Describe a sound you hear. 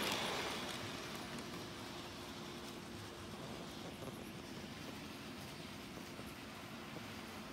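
A toy train rumbles and clicks along its track close by.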